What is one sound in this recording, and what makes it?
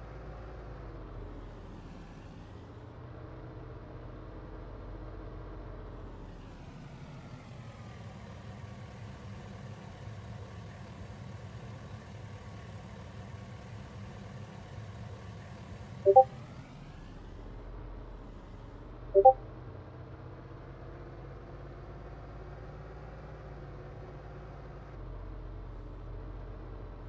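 A car engine hums steadily and rises and falls in pitch.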